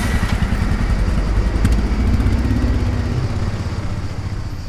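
A car drives past.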